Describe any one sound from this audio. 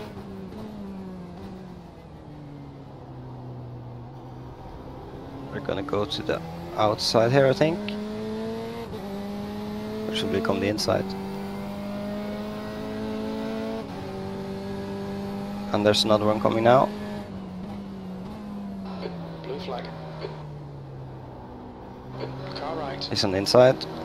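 A racing car engine drones, rising and falling in pitch as gears change.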